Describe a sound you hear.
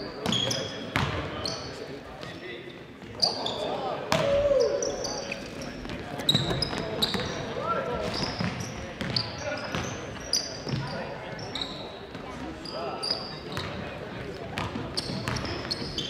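Spectators murmur and call out from the stands.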